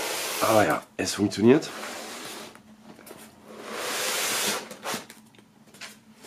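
An inner box slides out of its cardboard sleeve with a soft scrape.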